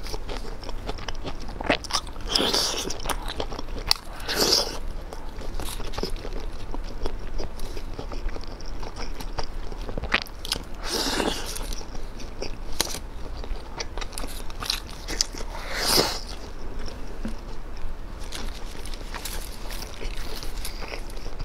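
A young woman bites and chews crunchy food close to a microphone.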